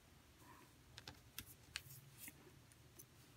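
Paper cards rustle and tap as a hand shuffles them.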